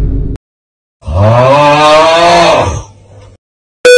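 A young boy's cartoon voice shrieks in alarm.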